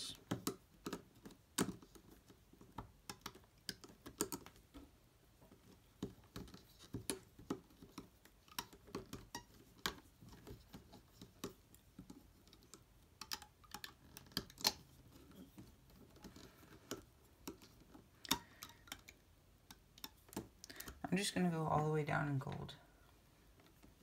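A plastic hook clicks and scrapes as it pulls rubber bands.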